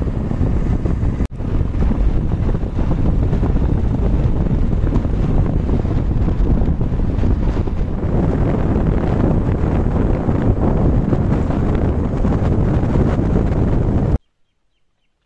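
Strong wind buffets and roars outdoors.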